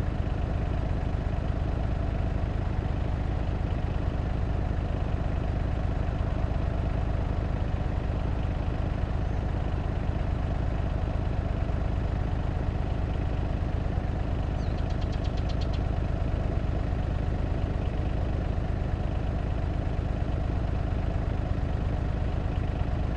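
A small vehicle's engine idles steadily.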